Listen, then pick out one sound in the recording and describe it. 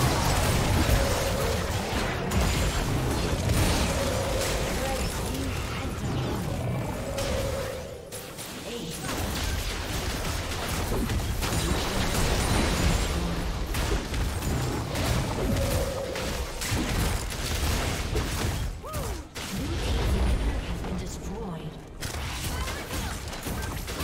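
Video game spells and attacks blast and crackle in a busy fight.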